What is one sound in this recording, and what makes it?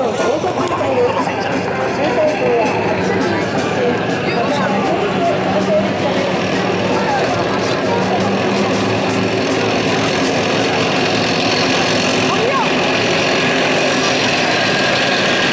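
Tank engines rumble steadily as the tanks roll past.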